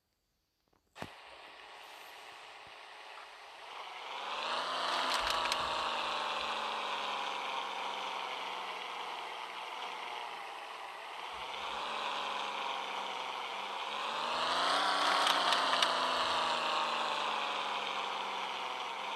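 A car engine hums and revs up and down as the car drives slowly.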